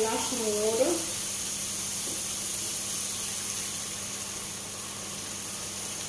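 Water pours from a mug into a hot frying pan.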